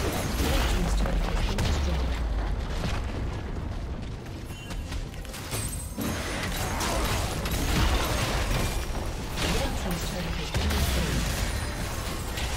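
Magic spells crackle and burst in a fast fight.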